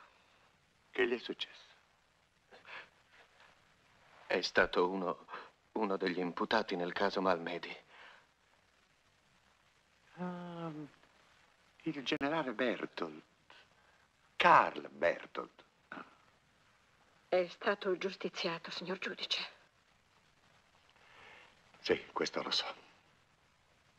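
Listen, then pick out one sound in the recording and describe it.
An elderly man speaks calmly and gravely.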